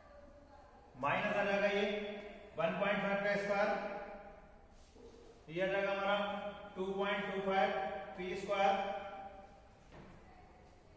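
A man speaks clearly and steadily, close by, as if teaching.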